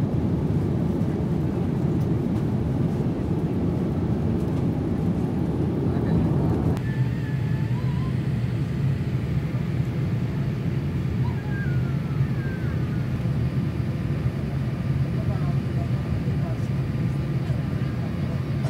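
A jet engine roars steadily inside an airliner cabin.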